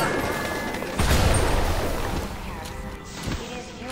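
An explosion booms and fire crackles.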